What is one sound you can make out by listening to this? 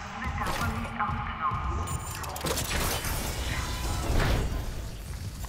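A door slides open with a mechanical hiss.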